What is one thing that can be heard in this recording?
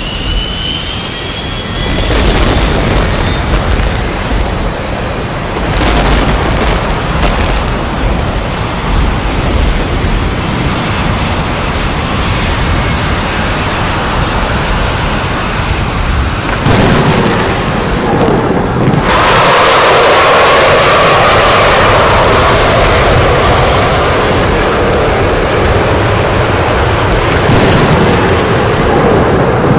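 A jet airliner's engines roar steadily.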